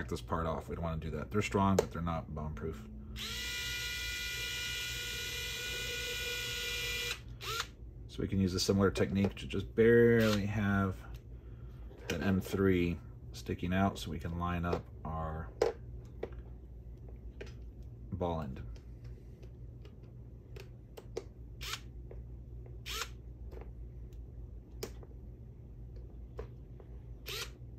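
Small plastic parts click and rattle as they are handled.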